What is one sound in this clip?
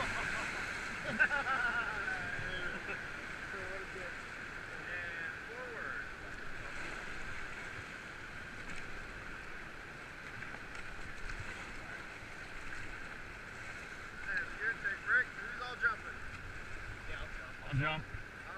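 River rapids rush and churn steadily close by.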